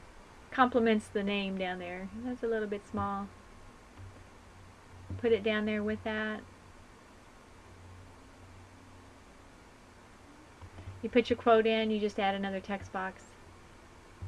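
A woman talks calmly into a microphone, in short phrases.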